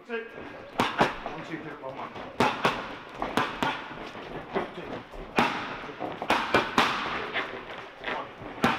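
Boxing gloves smack sharply against punch mitts in quick bursts, echoing in a large hall.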